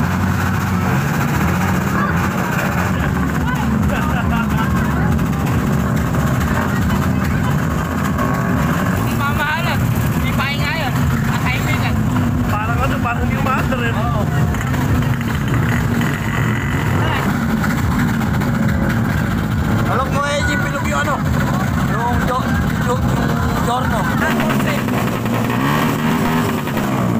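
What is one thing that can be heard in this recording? A scooter engine idles steadily close by.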